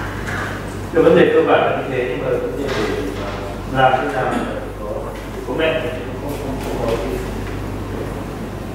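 A man lectures.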